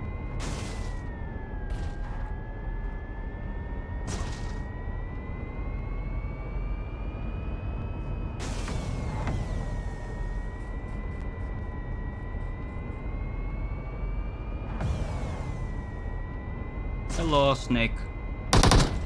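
A car engine hums steadily, rising and falling slightly in pitch.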